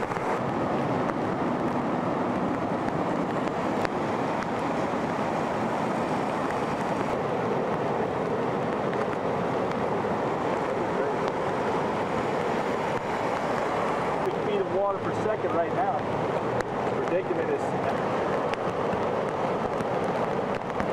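Floodwater rushes and churns loudly.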